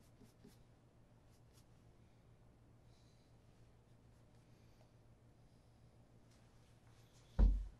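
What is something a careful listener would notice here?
A cloth rubs softly against a leather shoe.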